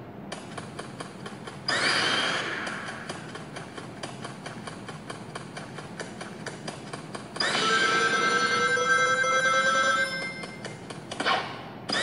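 Upbeat music with a fast beat plays from a phone's speaker.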